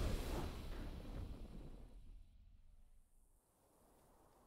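A triumphant game fanfare rings out and fades away.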